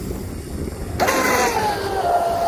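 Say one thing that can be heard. A small electric motor whines at high pitch.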